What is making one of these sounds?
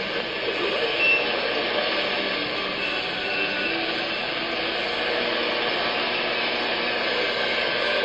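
A radio receiver hisses with static and faint whistling tones as it is tuned.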